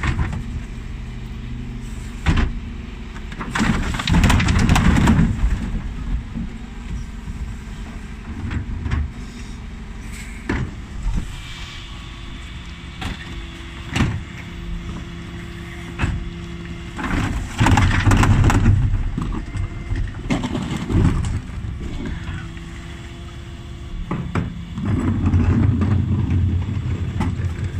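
A garbage truck engine idles with a steady low rumble.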